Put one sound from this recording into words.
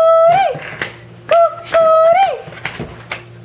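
An electronic toy plays short chiming tones.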